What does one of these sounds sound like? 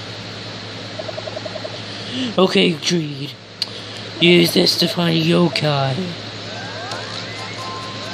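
A handheld game console plays soft electronic beeps and tones.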